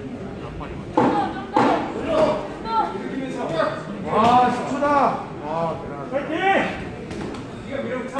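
Men shout from ringside.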